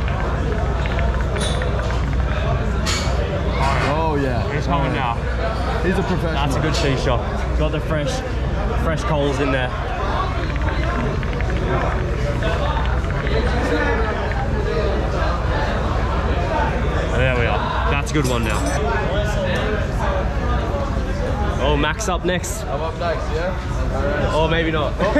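Many people chatter in the background.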